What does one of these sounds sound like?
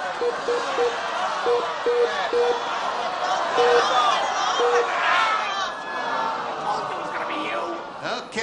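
A studio audience talks and cheers loudly.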